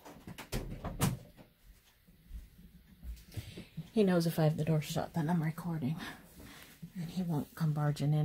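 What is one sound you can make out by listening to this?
Stiff netting fabric rustles softly as hands handle it.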